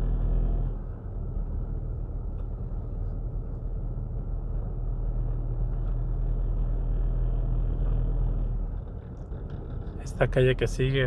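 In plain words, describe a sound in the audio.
A car drives slowly, its engine humming low inside the cabin.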